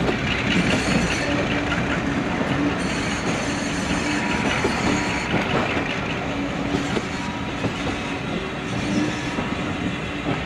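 A diesel locomotive engine throbs and rumbles steadily.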